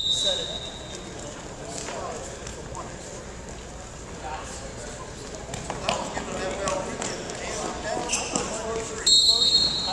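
Spectators talk and call out in an echoing gym.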